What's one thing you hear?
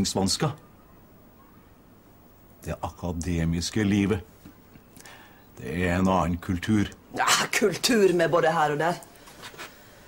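A middle-aged man speaks calmly and persuasively, close by.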